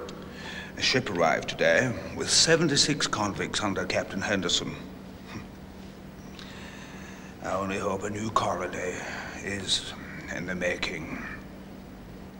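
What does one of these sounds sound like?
A middle-aged man speaks calmly and closely.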